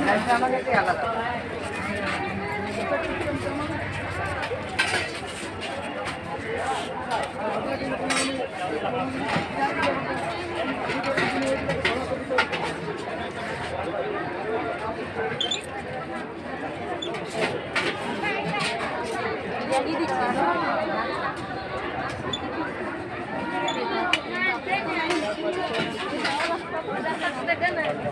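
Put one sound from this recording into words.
Many people talk nearby in a busy crowd outdoors.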